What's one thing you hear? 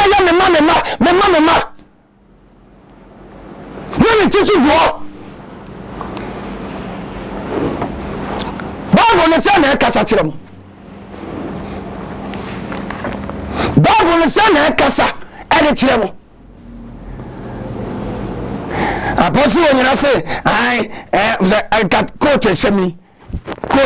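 A man talks loudly and with animation, close to a microphone, in short bursts.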